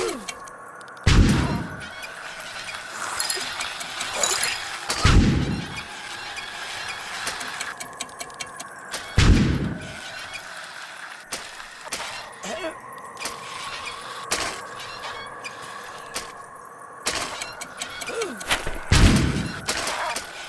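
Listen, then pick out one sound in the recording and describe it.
A unicycle wheel thumps heavily as it lands after a jump.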